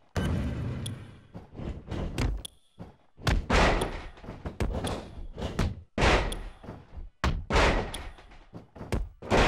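Heavy blows land with loud thuds and slaps.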